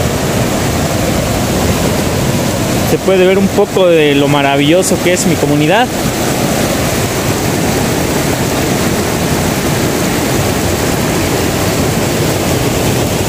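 A shallow stream rushes and babbles over stones.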